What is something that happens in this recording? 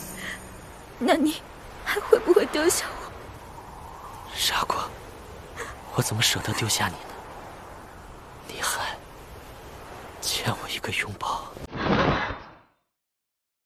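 A young woman speaks softly and sadly.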